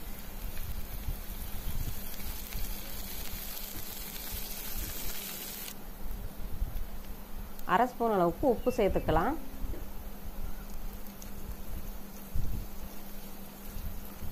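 A spatula stirs sliced onions in a nonstick pan.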